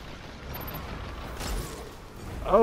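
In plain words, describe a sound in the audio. A gun fires loudly.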